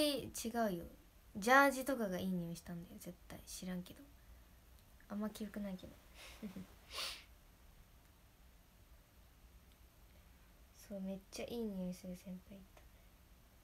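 A young woman speaks softly and closely into a microphone, in short bursts with pauses.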